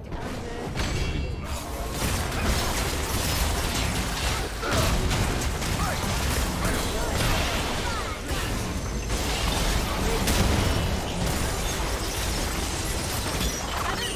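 Game spell effects whoosh, crackle and explode in quick bursts.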